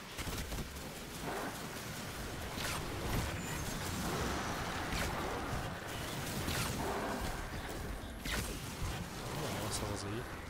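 Bow shots snap sharply again and again.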